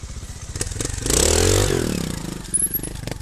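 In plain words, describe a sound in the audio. A trial motorcycle engine revs up sharply.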